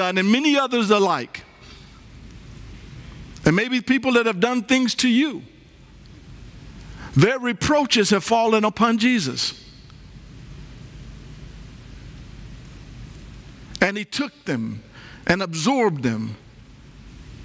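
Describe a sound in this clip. A man speaks with animation into a close microphone, in bursts with pauses.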